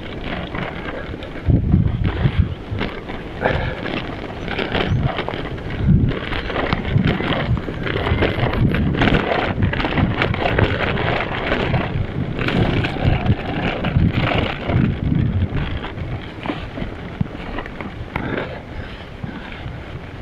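Wind buffets outdoors throughout.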